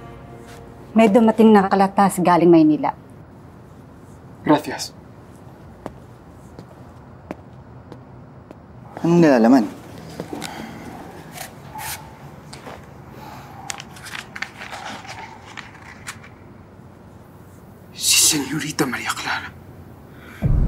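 A young man speaks close to a microphone in short bursts.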